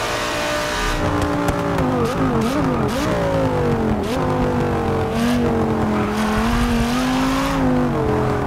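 A racing car engine snarls and pops as it shifts down hard while braking.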